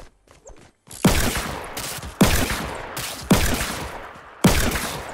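Loud shotgun blasts ring out one after another.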